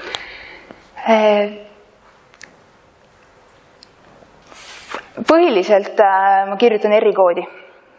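A woman speaks into a microphone over loudspeakers in an echoing hall.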